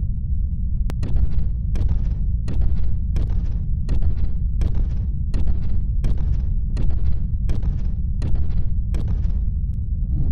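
Footsteps echo steadily along a hallway.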